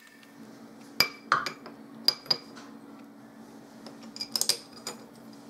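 Metal parts clink as they are fitted together.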